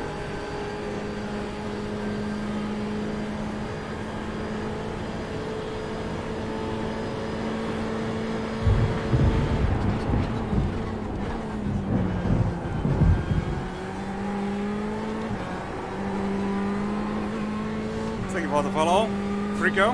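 A racing car engine drones steadily, rising and falling in pitch as it shifts gears.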